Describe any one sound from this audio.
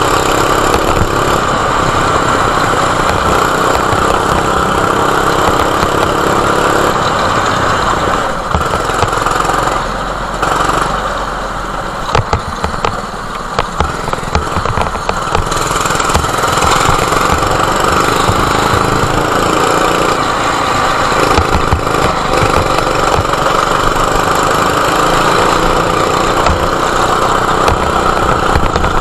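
A kart engine buzzes loudly close by, revving up and down.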